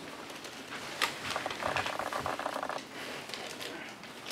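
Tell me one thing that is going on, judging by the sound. Dried beans rattle as they are scooped.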